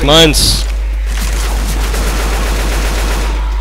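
Rapid gunshots fire from a rifle.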